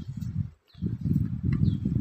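Soil pours from a bucket onto the ground.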